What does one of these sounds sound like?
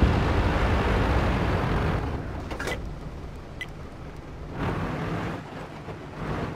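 A heavy tank engine rumbles.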